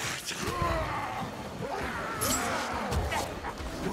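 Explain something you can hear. A sword slashes and strikes a creature.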